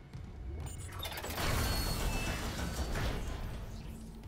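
A heavy sliding door hisses open.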